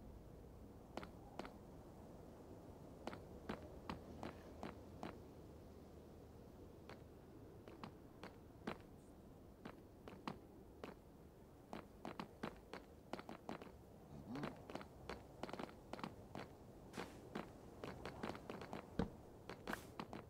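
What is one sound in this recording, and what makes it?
Footsteps tap on hard stone at an uneven pace.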